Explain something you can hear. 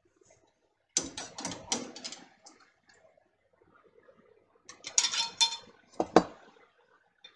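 A metal pan clatters and scrapes.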